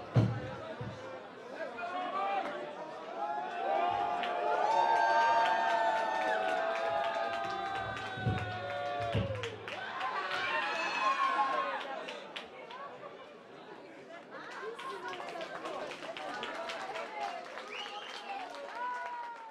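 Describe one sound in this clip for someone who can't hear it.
A crowd cheers and shouts loudly in a large hall.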